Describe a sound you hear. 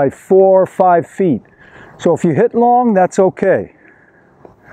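A man speaks calmly and clearly into a microphone close by.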